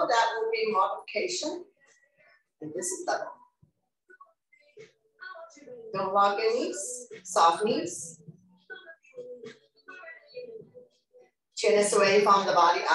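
A middle-aged woman speaks with animation into a nearby microphone.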